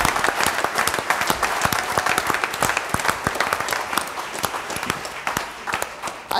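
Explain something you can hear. An audience claps loudly in a large hall, slowly dying down.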